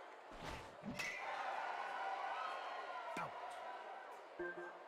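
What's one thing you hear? A stadium crowd cheers.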